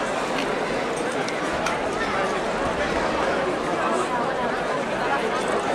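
A large outdoor crowd murmurs and chatters steadily.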